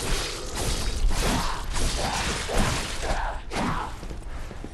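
Heavy sword blows land with sharp, crackling bursts.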